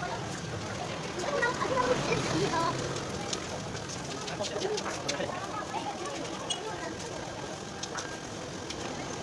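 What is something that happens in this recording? Children chatter nearby outdoors.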